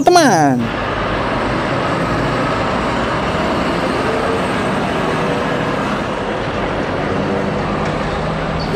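A heavy truck engine rumbles as it tows a bus slowly along the road.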